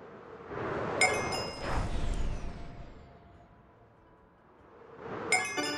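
Wind rushes past a gliding game character, swelling and fading.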